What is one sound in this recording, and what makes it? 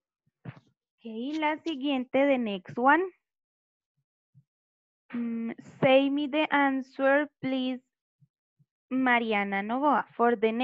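A young girl speaks through an online call, slowly and clearly.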